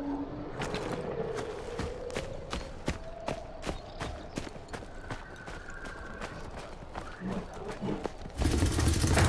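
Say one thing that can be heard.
Footsteps tread steadily over grass and dirt.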